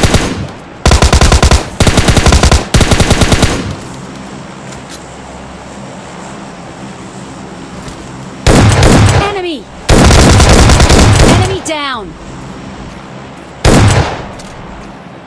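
Rapid rifle fire rattles in loud bursts.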